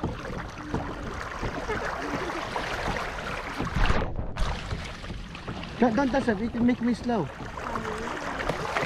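Water sloshes and splashes against a moving boat.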